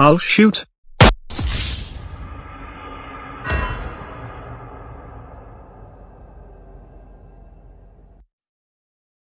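A gunshot rings out loudly with a long echo.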